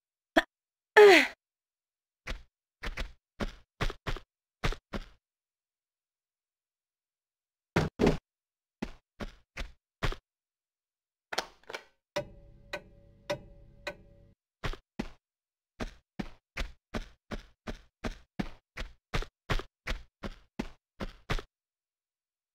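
Footsteps tap quickly on stone.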